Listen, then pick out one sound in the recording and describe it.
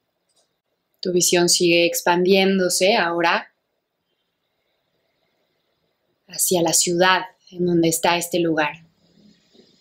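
A young woman speaks softly and calmly, close to a microphone, with long pauses.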